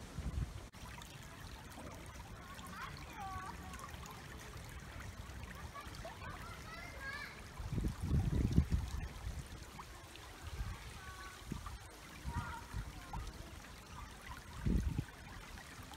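Shallow water trickles gently over stones in a stream.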